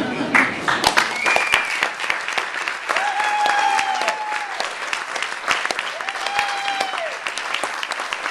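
Audience members whoop and cheer.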